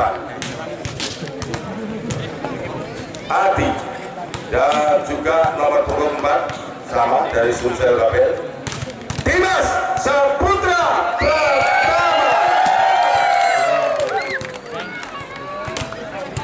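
A large crowd cheers and shouts loudly in an echoing space.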